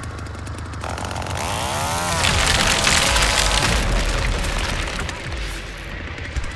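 A wooden barricade smashes and crumbles apart.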